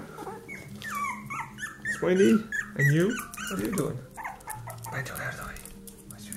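Puppies whine and squeak close by.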